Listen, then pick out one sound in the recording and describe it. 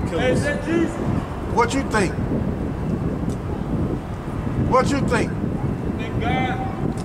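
Traffic hums steadily on a city street outdoors.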